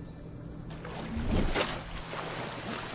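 Water splashes loudly as a submarine breaks the surface.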